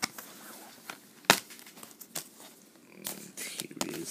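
A plastic disc case snaps open.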